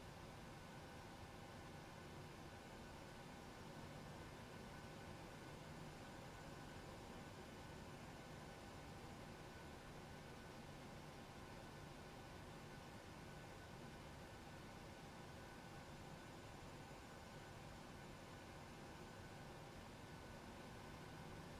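A jet engine hums steadily while an airliner taxis.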